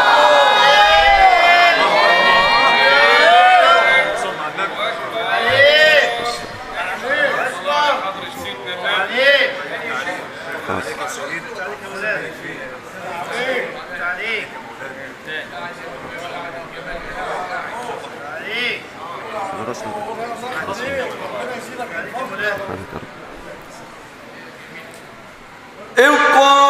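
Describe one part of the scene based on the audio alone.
A man chants through a microphone, his voice booming around a large echoing hall.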